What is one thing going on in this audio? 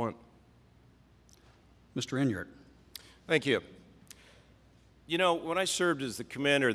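A man speaks with pauses through a microphone.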